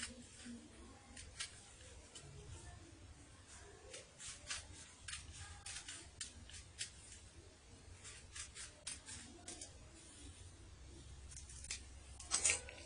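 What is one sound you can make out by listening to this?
Scissors snip through paper in short, crisp cuts.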